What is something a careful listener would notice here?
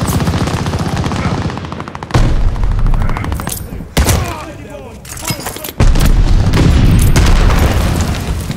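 Gunfire rattles in rapid, loud bursts.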